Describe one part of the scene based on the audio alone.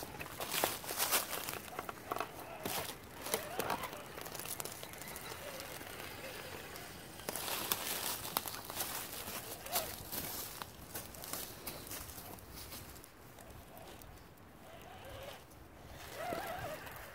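Plastic tyres crunch over dry leaves and knock against rocks and wood.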